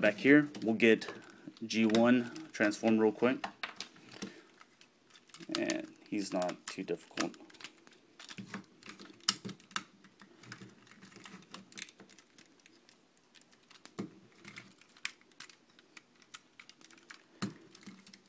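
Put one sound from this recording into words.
Plastic toy parts click and snap as they are twisted into place.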